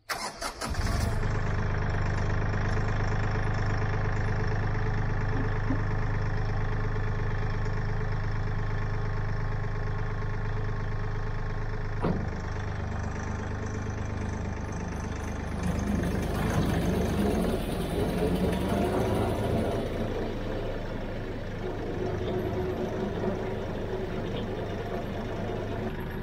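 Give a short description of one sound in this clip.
A tractor engine idles steadily close by.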